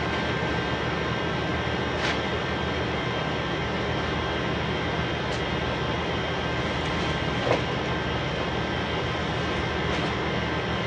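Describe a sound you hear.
Plastic garbage bags rustle and crinkle as a man handles them.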